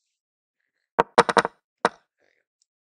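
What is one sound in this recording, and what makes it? A chess clock is tapped sharply a few times.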